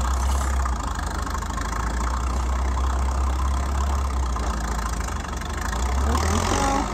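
A diesel engine of a backhoe rumbles steadily nearby, outdoors.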